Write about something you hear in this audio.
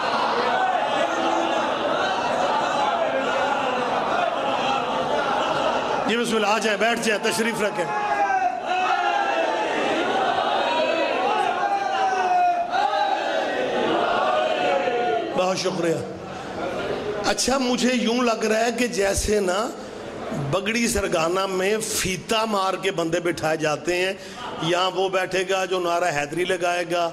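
A man speaks passionately and loudly through a microphone and loudspeakers.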